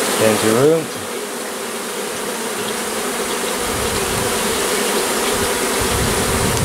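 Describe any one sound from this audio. A swarm of bees buzzes steadily and loudly.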